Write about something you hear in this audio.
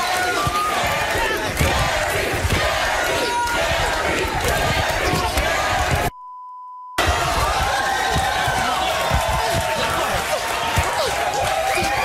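Young women shriek and yell while scuffling.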